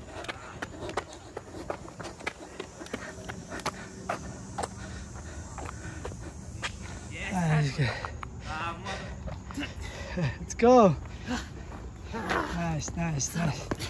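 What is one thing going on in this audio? Footsteps tap on concrete steps outdoors.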